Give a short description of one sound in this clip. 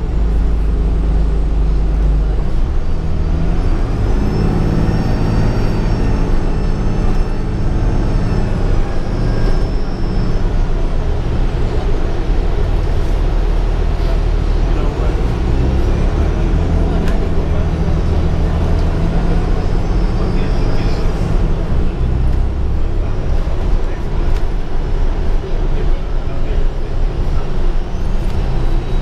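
Tyres hum on the road outside.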